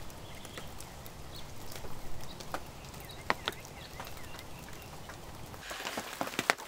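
Rain drips and patters on a metal lantern.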